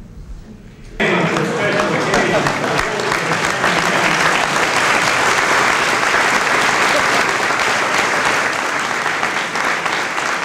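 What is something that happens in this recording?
An audience applauds loudly in a large echoing hall.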